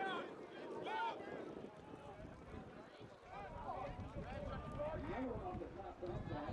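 Young women shout and cheer excitedly outdoors.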